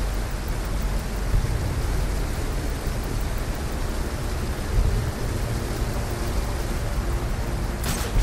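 Water flows and churns in a low, steady rumble.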